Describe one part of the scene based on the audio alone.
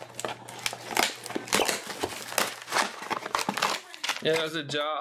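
Plastic shrink wrap crinkles as hands handle a box.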